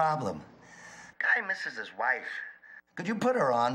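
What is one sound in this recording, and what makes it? A young man speaks tensely into a phone.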